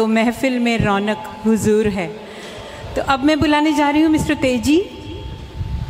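A woman sings a melody into a microphone over loudspeakers in an echoing hall.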